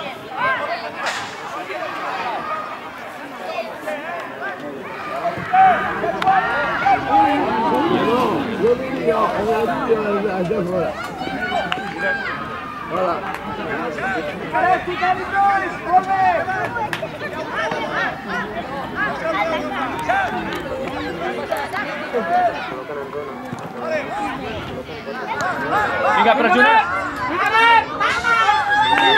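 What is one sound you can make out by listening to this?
Spectators shout and cheer outdoors.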